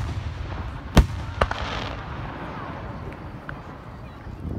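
Fireworks burst with loud booms outdoors.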